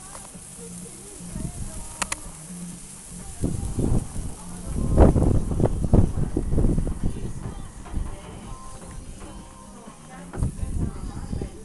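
Burgers sizzle on a hot grill.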